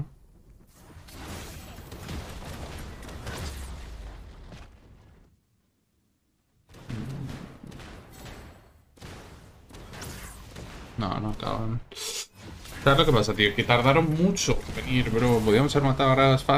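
Game sound effects clash and whoosh.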